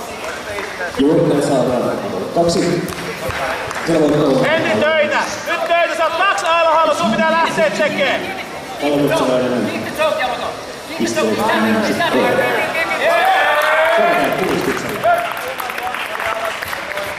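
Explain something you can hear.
Men shout loudly from nearby in an echoing hall.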